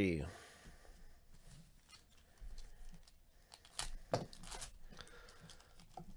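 Foil card wrappers crinkle and rustle as they are torn open.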